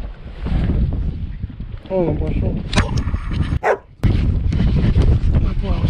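A fishing reel clicks as it is handled.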